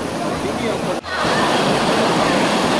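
Water rushes and foams down a small waterfall.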